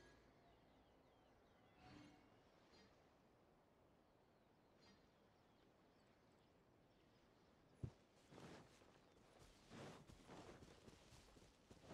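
Fiery blasts burst and crackle in bursts.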